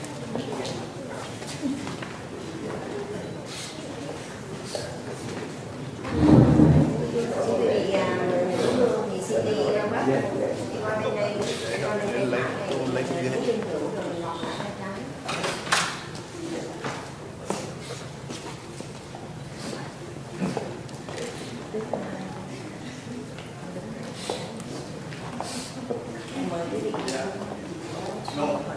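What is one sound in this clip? A crowd of men and women talk quietly nearby.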